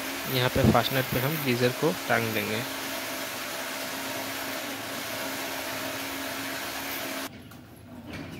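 A power drill whirs steadily against a wall.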